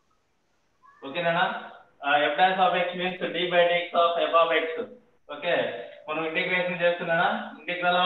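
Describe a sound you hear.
A man speaks steadily, as if teaching, heard through an online call.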